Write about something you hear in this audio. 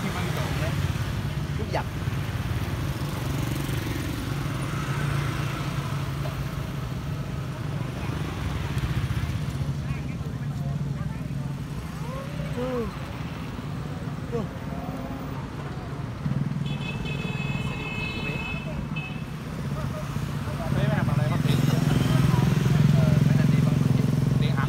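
Motorbike engines hum as they pass close by.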